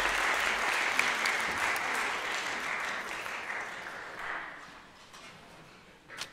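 An audience applauds in a large echoing hall, then the clapping dies away.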